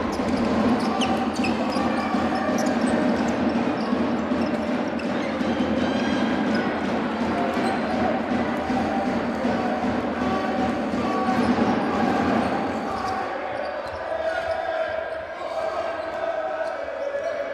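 A crowd cheers and chatters in a large echoing hall.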